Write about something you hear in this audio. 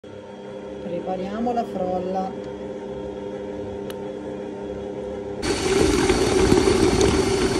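A stand mixer motor hums steadily.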